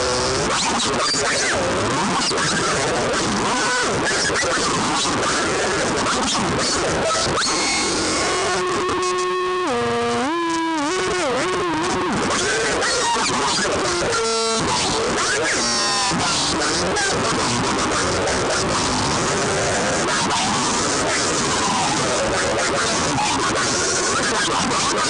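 A distorted electric guitar plays loud, fast, noisy riffs.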